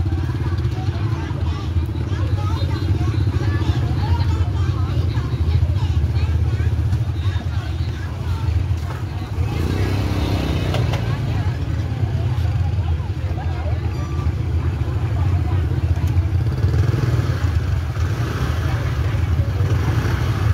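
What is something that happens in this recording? A motorbike engine rumbles close by at low speed.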